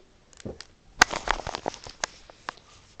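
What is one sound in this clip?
A soft toy is shuffled about on a carpet with light taps and rustles.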